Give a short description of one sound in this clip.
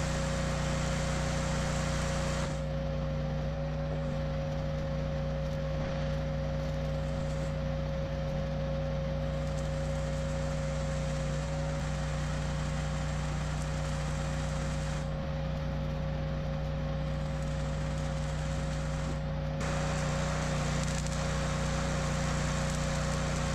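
A welding machine hums steadily.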